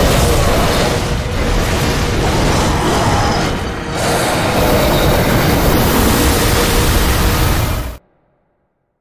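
A giant wolf growls and snarls in a fight.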